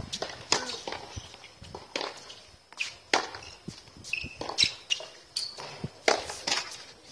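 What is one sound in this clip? A tennis ball is struck sharply with a racket, again and again.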